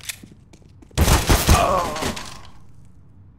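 Gunfire bursts loudly, then fades.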